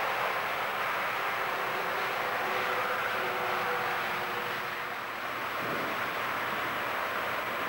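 A train rumbles along the tracks as it approaches.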